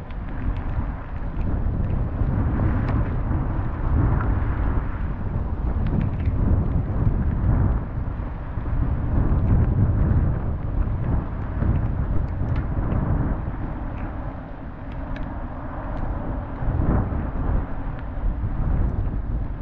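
A car engine hums while driving on a wet road.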